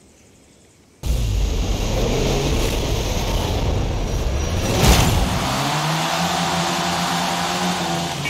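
Car engines roar and rev as a race starts.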